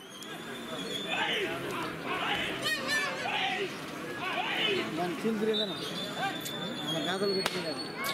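Men nearby shout at bulls pulling a load.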